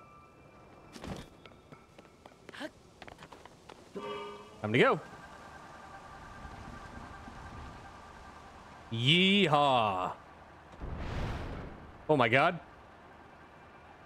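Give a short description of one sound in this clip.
Wind blows softly through falling snow.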